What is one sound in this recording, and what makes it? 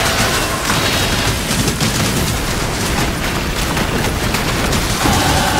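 Spell effects crackle and burst rapidly in a game.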